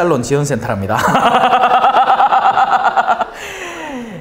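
A man laughs loudly through a microphone.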